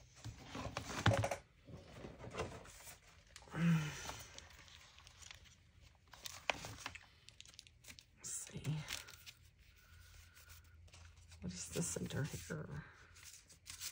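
Sheets of paper rustle and shuffle as they are handled.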